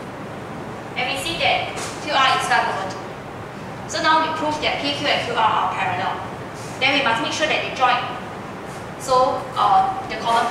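A young woman speaks clearly and steadily, explaining.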